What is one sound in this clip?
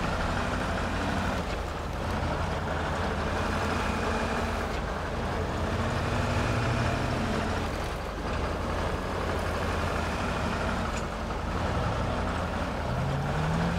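Tyres crunch over dirt and grass.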